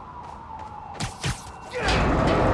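A web shoots out with a sharp whoosh.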